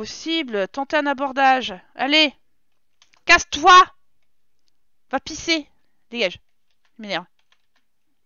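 A young woman talks with animation into a close headset microphone.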